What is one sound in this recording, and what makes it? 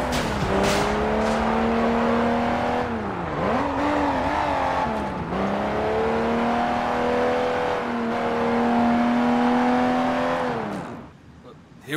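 A car engine revs loudly, rising and falling in pitch as the car speeds along.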